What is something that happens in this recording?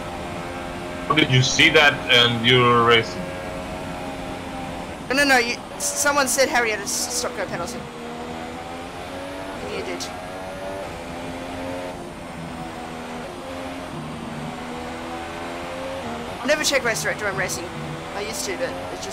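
A racing car engine whines steadily, its pitch rising and falling with gear changes.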